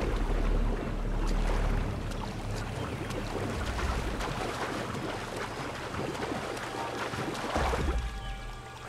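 Water splashes as someone wades and swims through it.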